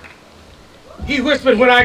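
Another elderly man begins speaking loudly into a microphone.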